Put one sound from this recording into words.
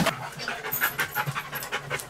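A large dog's claws patter across a wooden floor.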